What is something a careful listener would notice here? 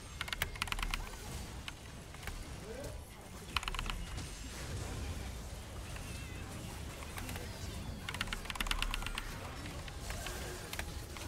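Game spells and attacks crackle and clatter in quick bursts.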